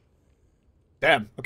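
A man speaks briefly and loudly into a close microphone.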